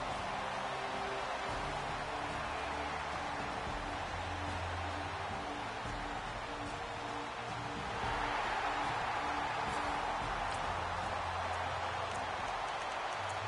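A large stadium crowd roars steadily, swelling louder partway through.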